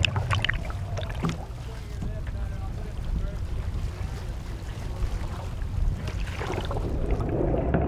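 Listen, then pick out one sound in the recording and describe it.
Waves splash against a surfacing whale.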